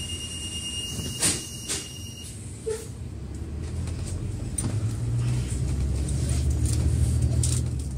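A vehicle engine rumbles low and steadily, growing louder.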